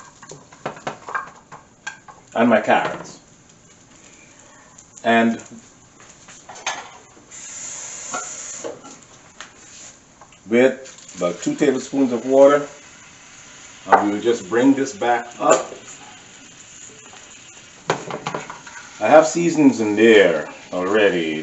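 A spatula scrapes and stirs vegetables in a frying pan.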